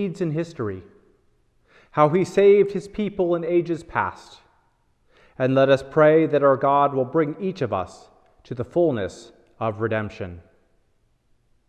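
A man reads aloud in a slow, chanting voice close by.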